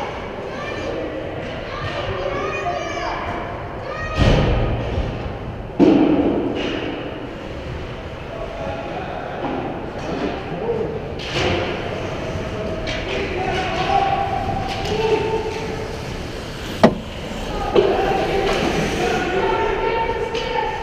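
Young hockey players shout in a large echoing hall.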